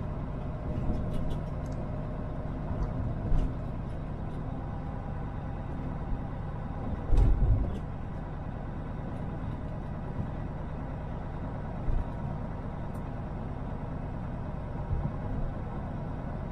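The cab rattles and thumps over bumps in the road.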